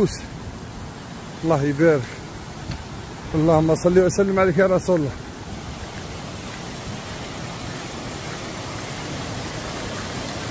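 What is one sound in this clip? A stream rushes and splashes over rocks nearby.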